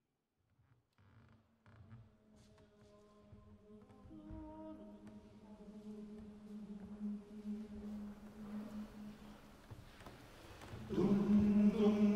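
A men's choir sings in harmony in a large echoing hall.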